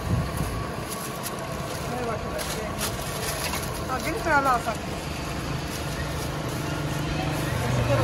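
Paper crinkles as a sandwich is wrapped by hand.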